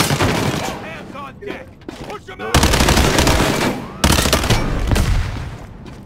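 A rifle fires loud rapid bursts of shots.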